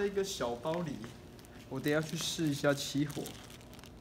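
A plastic bag crinkles in hands.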